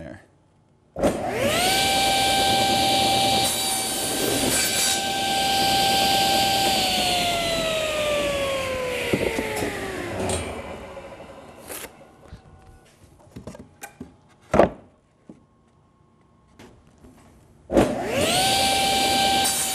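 A table saw motor whirs up to a steady high whine and then slowly winds down.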